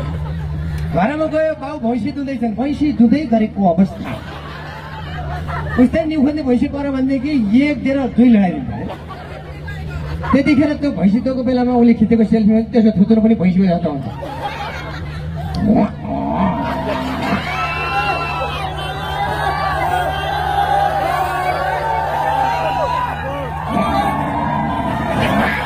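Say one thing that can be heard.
A young man talks with animation through a microphone and loudspeakers, in bursts with pauses.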